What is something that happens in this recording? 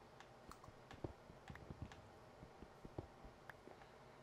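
Blocks crunch and thud as they break.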